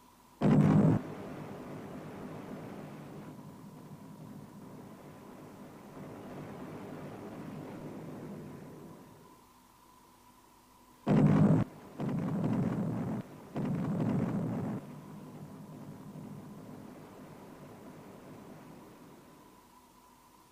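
Naval guns fire with deep, rumbling booms.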